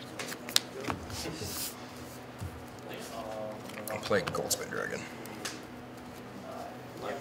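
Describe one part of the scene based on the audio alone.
Cards slide and slap softly onto a mat.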